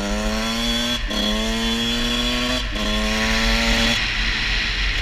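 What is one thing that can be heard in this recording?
A dirt bike engine revs up, climbing in pitch and dropping with each gear change.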